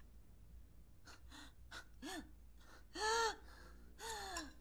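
A young woman speaks nearby in a high, strained voice.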